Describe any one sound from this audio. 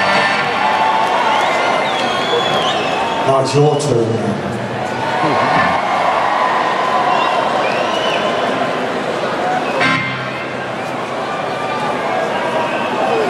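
A crowd cheers and whistles from all around.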